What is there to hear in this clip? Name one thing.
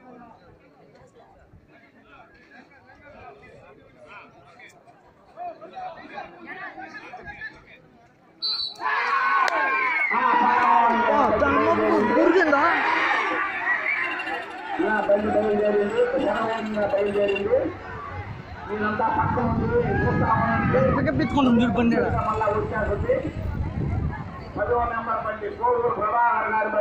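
A crowd murmurs outdoors at a distance.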